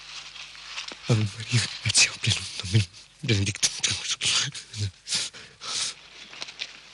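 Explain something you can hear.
A man sobs and groans close by.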